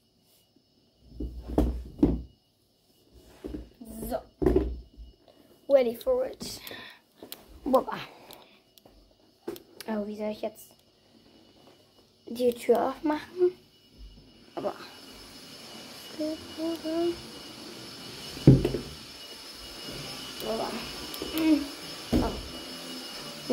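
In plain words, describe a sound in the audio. A young girl talks close to the microphone.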